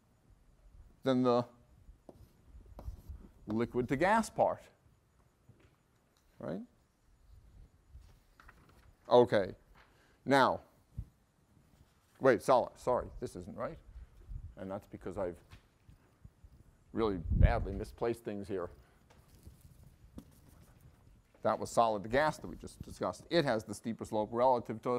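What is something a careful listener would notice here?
A man lectures calmly through a microphone, in bursts with pauses.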